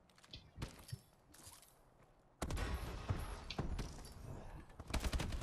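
Gunshots crack in quick bursts, close by.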